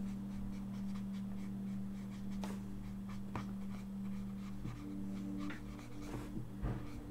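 A marker scratches and squeaks across paper.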